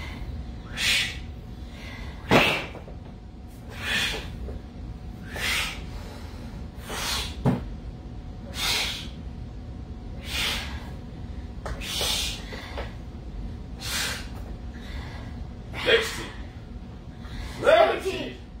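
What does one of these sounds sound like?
A man exhales sharply with each dumbbell press.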